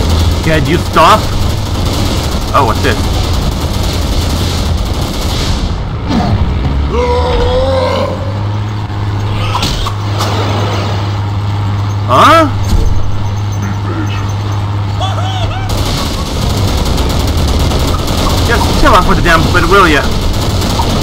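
Fiery blasts whoosh and boom.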